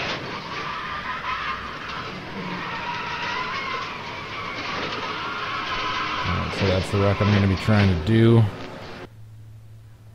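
A race car engine roars through a broadcast.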